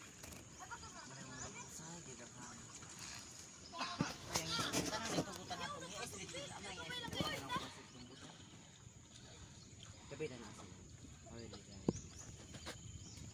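Young people chat and call out nearby.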